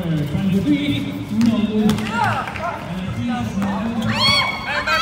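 Young men shout and call out across an outdoor court.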